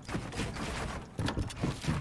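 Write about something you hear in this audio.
A pickaxe strikes wooden walls in a video game.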